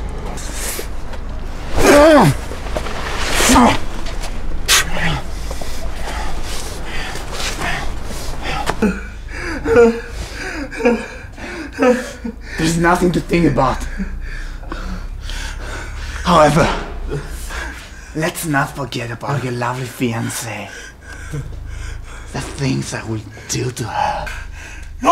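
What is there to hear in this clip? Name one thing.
A young man talks tensely up close.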